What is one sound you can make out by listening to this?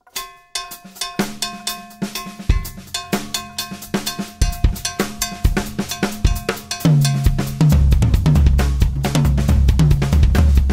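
Cymbals ring and shimmer.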